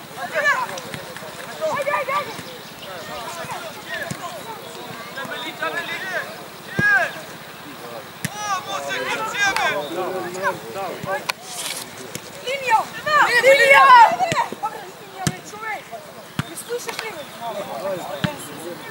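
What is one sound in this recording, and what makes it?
Young players shout and call out across an open outdoor field.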